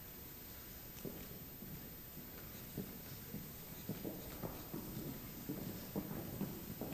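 Performers' footsteps thud across a wooden stage in a large echoing hall.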